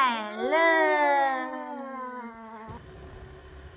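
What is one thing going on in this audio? A young woman speaks brightly and close by, her voice rising and falling.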